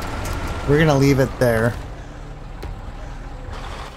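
A heavy truck engine rumbles low.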